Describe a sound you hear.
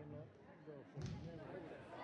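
A volleyball is hit with a sharp thump.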